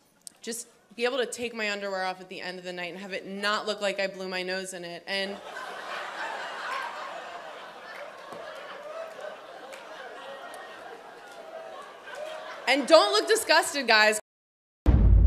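A woman speaks into a microphone to an audience in a large hall.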